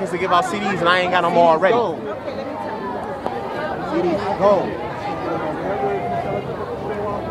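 A crowd of young people chatters outdoors.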